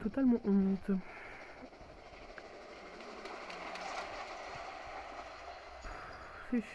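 A steam train rumbles past.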